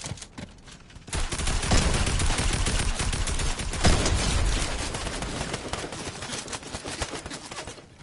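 A pickaxe whooshes and strikes with sharp thuds.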